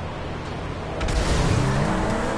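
A car lands hard with a thud.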